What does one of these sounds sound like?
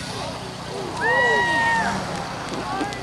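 A voice calls out loudly across an open field.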